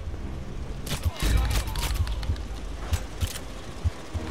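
A pistol fires a few sharp, echoing shots.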